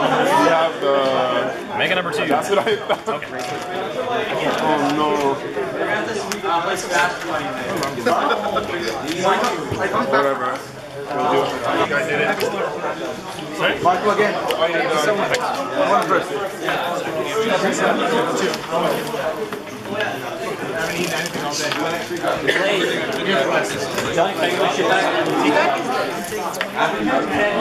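Playing cards are shuffled by hand.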